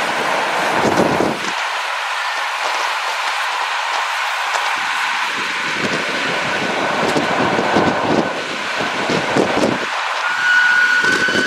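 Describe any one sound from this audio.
Wind rushes past an open train car.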